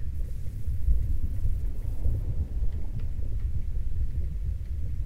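A low, muffled underwater rumble churns steadily.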